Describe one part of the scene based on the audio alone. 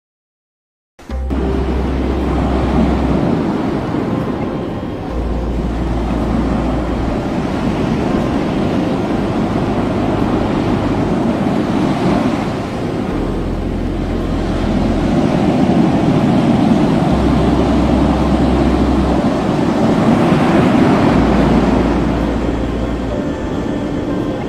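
Waves splash against a sinking ship.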